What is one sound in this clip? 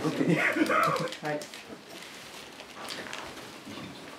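Paper crinkles.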